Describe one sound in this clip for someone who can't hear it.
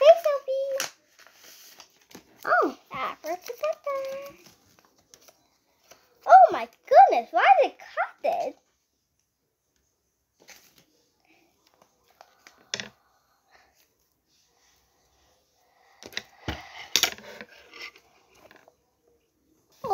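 Young girls talk with animation close by.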